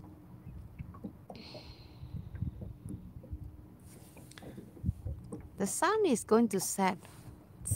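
Water laps gently against the side of a small boat.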